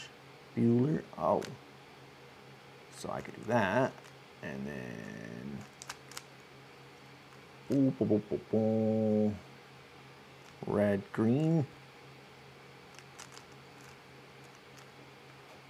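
A puzzle cube clicks as it is twisted.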